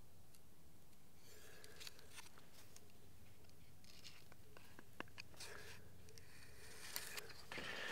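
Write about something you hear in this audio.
A metal square scrapes and taps against wood.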